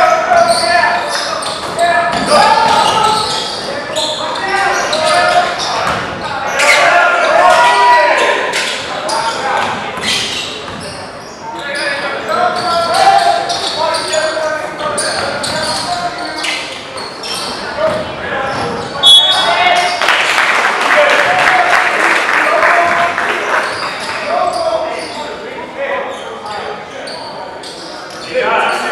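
A crowd of spectators chatters and shouts in an echoing hall.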